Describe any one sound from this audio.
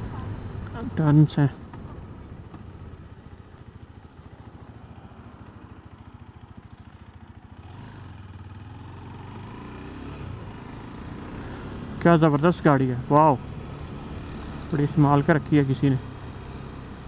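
A motorcycle engine rumbles at low speed, rising and falling with the throttle.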